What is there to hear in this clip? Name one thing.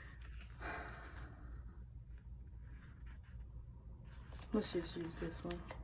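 A sticker peels off a backing sheet.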